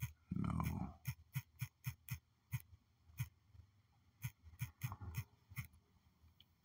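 Phone keyboard taps click quickly one after another.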